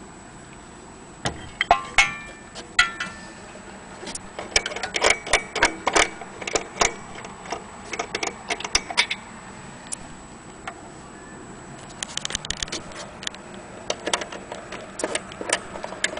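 A hand knocks and taps against a wooden clock case.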